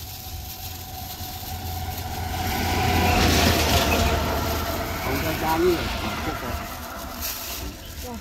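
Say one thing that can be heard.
Fruit rustles and knocks as it is dropped into a plastic bag.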